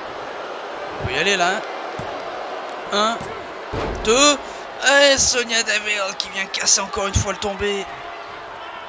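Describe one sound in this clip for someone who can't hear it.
A hand slaps a wrestling mat several times.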